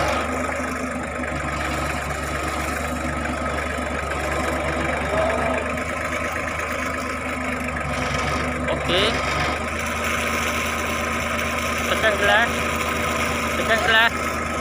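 A tractor engine chugs steadily close by.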